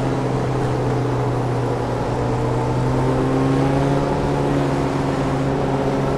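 A racing car engine drones steadily at high revs, its pitch slowly rising.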